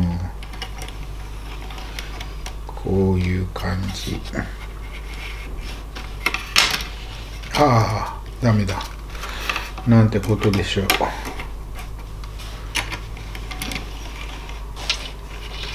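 Small plastic model train cars click and tap as they are handled.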